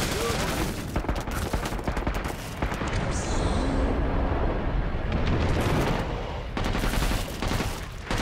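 Rapid gunfire blasts in quick bursts.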